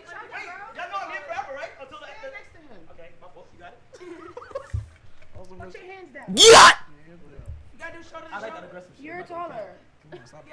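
Young women talk and shout over each other with animation.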